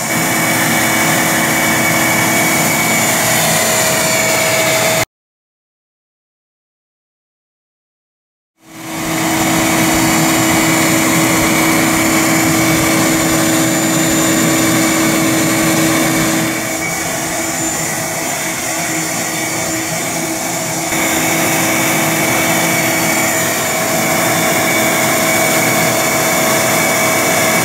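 A swarm of honey bees buzzes.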